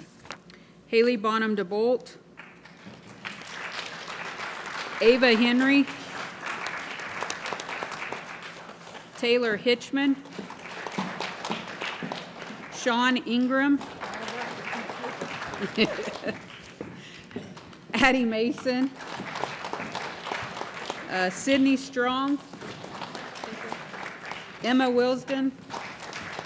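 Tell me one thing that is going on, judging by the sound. A middle-aged woman reads out names through a microphone in an echoing hall.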